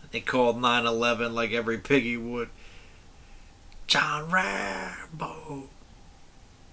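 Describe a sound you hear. A man laughs close to a microphone.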